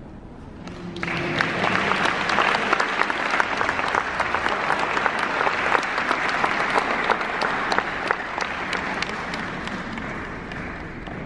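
An audience claps in rhythm.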